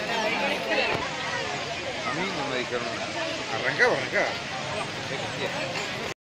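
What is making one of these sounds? A large outdoor crowd of men and women chatters all around.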